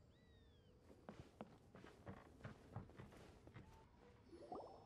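Footsteps tap on wooden boards.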